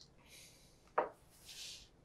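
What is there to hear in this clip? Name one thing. A shoe is set down on a wooden table with a knock.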